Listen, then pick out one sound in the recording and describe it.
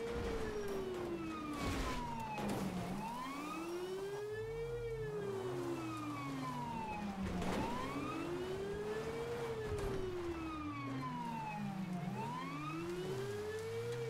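A car engine hums as it drives over rough ground.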